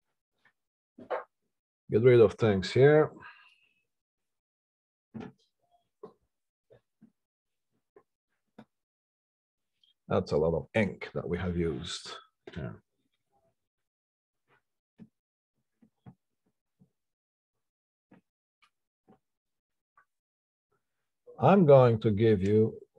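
A middle-aged man speaks in short bursts, close to a microphone.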